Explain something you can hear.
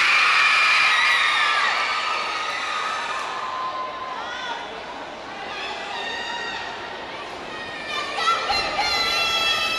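A crowd of young women and girls chatters and cheers in a large echoing hall.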